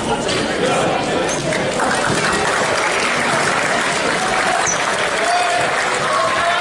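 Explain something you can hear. Young men chatter and shout nearby.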